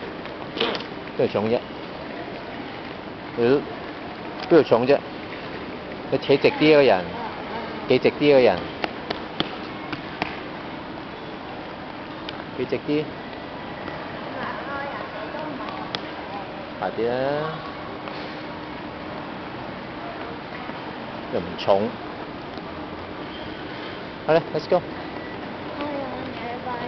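A young girl talks and calls out nearby in short bursts.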